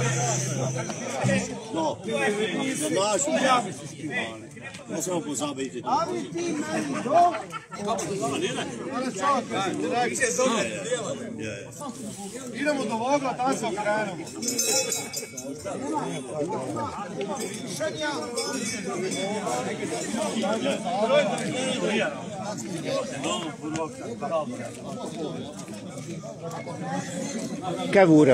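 Several men sing along with the band.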